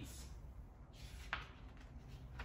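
A book page turns with a paper rustle.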